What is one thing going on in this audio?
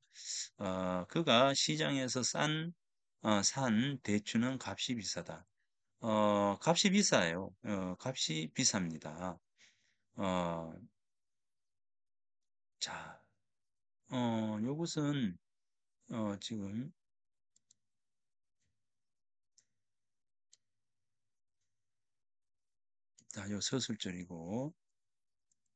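A middle-aged man speaks calmly over an online call, pausing between phrases.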